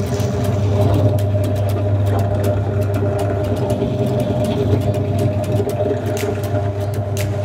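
A drill press motor hums steadily.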